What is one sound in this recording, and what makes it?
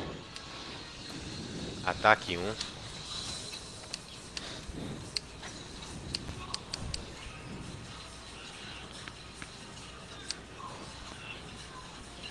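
Soft game menu clicks tick as selections change.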